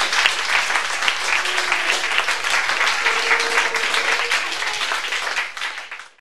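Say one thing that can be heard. A string band with a fiddle and a double bass plays a lively tune, then fades out.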